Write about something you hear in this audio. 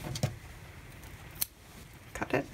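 Small scissors snip once.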